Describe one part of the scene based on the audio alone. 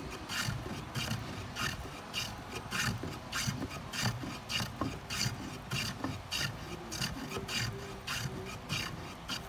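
A spokeshave shaves wood in quick, rhythmic rasping strokes.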